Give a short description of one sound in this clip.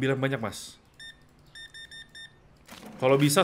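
A cash register beeps in short bursts.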